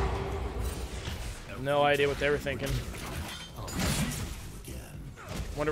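Video game spell and combat sound effects clash and whoosh.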